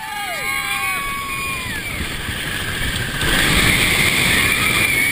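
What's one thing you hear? A roller coaster rattles and roars along a wooden track.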